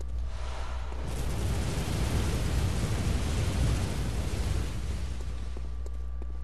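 Metal scrapes against stone in a long grinding rush.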